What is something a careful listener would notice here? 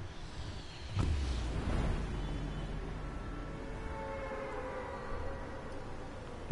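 Wind rushes steadily during a fall through the air.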